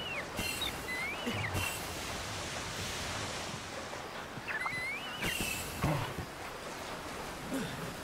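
Water splashes as someone wades through a shallow stream.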